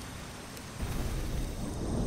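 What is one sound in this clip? Flames burst up with a low whoosh.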